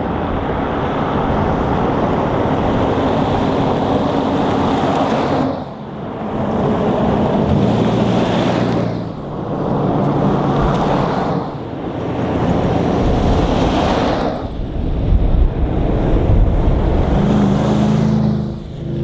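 Tyres roar on a road as vehicles pass close by.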